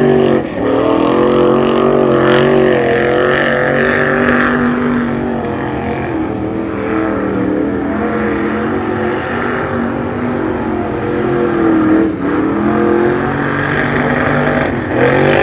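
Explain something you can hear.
A truck engine roars loudly, revving up and down as it drives through mud.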